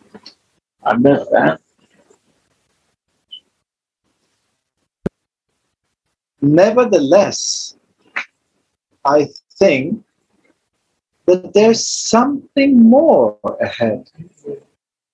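A man speaks calmly in short phrases with pauses.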